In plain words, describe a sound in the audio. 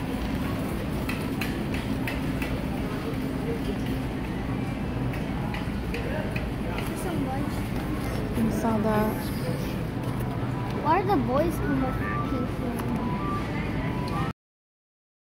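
A shopping cart rumbles and rattles as it rolls.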